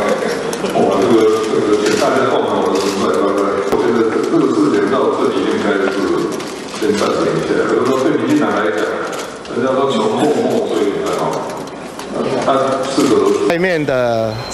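A middle-aged man speaks calmly into a microphone in a room with some echo.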